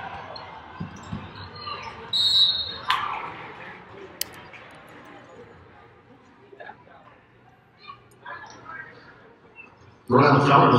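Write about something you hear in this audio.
A small crowd murmurs in a large echoing arena.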